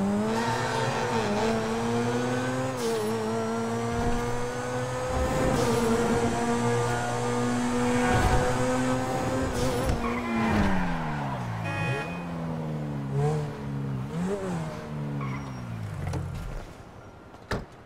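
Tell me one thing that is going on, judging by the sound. A sports car engine roars loudly, rising and falling in pitch as it speeds up and slows down.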